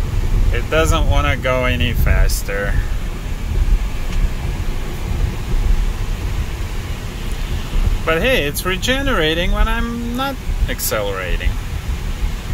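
A man speaks calmly close by, inside the car.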